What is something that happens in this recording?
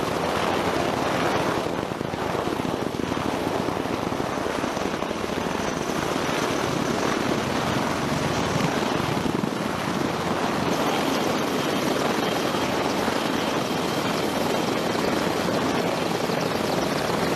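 Helicopter rotors thump loudly and steadily close by.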